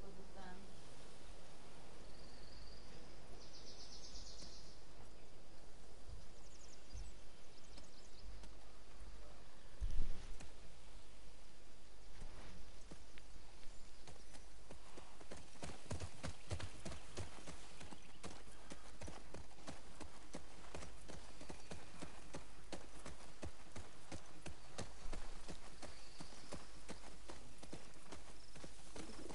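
Horse hooves clop steadily on a forest trail.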